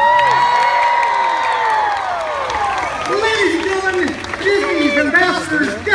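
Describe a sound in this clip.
A large crowd cheers and screams excitedly outdoors.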